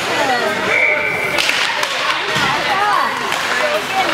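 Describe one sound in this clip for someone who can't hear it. Hockey sticks clack against a puck at a faceoff.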